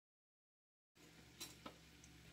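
Burdock strips sizzle in oil in a wok.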